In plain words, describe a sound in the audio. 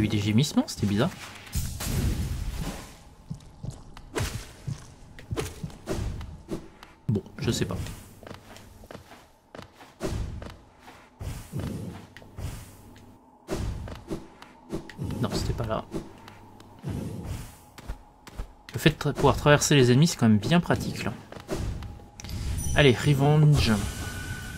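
A blade slashes through the air with quick swishes.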